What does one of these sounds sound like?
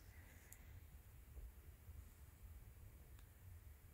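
A needle and thread pull softly through cloth.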